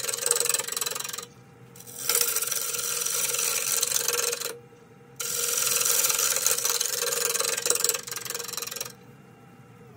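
A gouge scrapes loudly against spinning wood in bursts.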